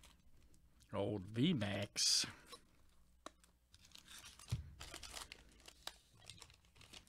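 Plastic wrap crinkles as it is pulled off a stack of cards.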